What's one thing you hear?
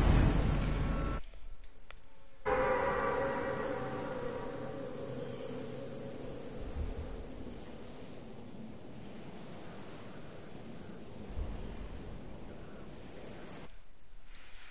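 Wind rushes steadily during a fall through the air, then fades.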